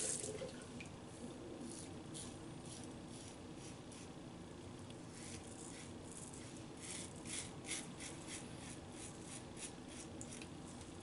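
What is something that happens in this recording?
A razor scrapes softly over stubble.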